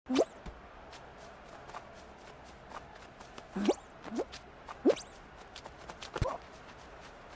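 Short springy sound effects rise in pitch as a game character jumps.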